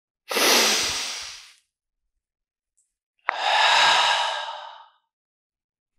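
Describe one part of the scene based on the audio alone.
A young man breathes out heavily close to a microphone.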